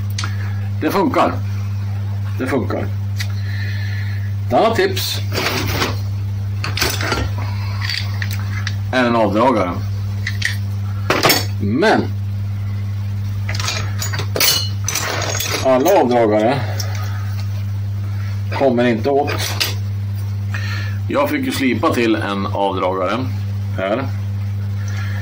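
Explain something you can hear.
Metal tools and parts clink and rattle.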